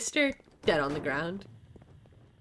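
A young woman speaks with animation into a close microphone.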